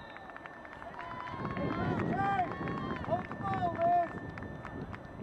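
A crowd of spectators cheers and shouts nearby.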